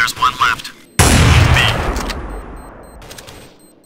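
A sniper rifle fires a single loud shot that echoes away.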